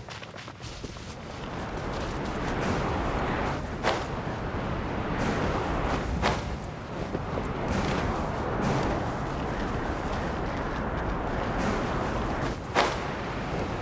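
Footsteps scrape and thud on rock.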